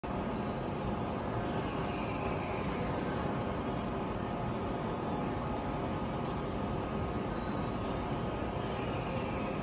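A stationary train hums and rumbles steadily nearby.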